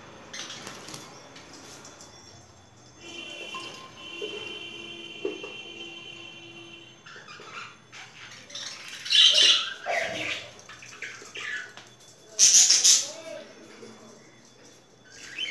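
Small birds chirp loudly and sharply nearby.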